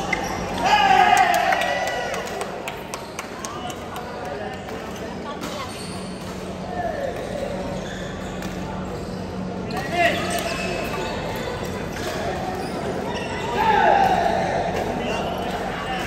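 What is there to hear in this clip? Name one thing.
Sports shoes squeak on a court floor.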